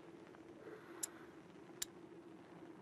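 Short sharp menu clicks sound a few times.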